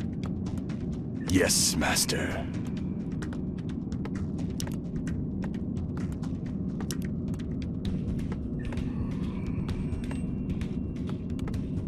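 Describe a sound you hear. A game's interface clicks sound quickly and repeatedly.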